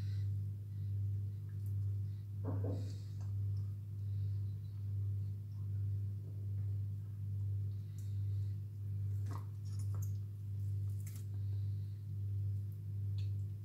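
Wet flesh squelches and tears as hands pull at meat.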